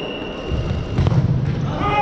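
A ball is kicked hard in an echoing hall.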